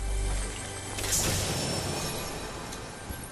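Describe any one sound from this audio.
A treasure chest bursts open with a bright shimmering chime.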